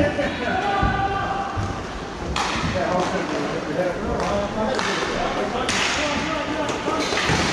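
Skates and sticks scrape and clack on the floor of a large echoing rink.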